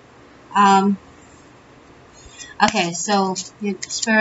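Playing cards riffle and rustle as they are shuffled.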